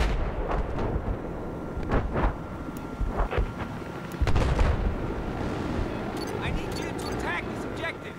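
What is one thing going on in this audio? Heavy cannon shots boom and thud again and again.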